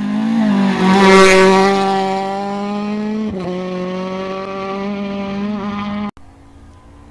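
A rally car engine roars past at high revs and fades into the distance.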